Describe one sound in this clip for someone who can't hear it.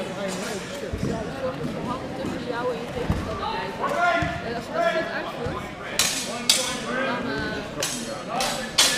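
Spectators murmur and chatter in a large hall.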